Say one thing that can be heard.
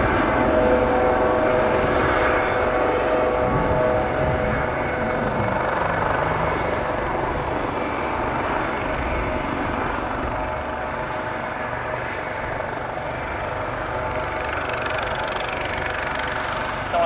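A helicopter's engine whines loudly nearby.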